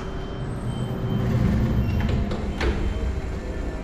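Elevator doors slide shut with a low rumble.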